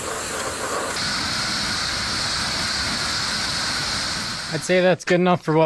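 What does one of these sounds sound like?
A pressure washer sprays water in a loud steady hiss.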